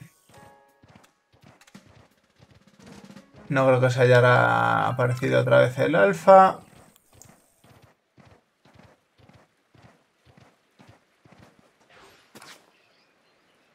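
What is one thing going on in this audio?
Hooves thud rhythmically on soft ground at a steady gallop.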